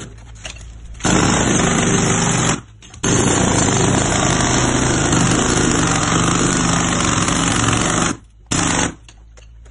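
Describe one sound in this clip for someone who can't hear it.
A jackhammer pounds loudly on concrete.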